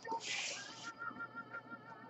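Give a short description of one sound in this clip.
A hand brushes against a cardboard box.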